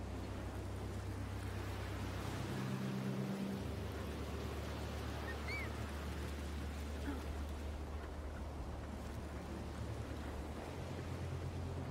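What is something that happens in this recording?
A climber's hands and feet rustle through thick grass.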